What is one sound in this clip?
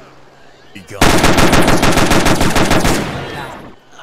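Rapid gunfire rattles in a loud burst.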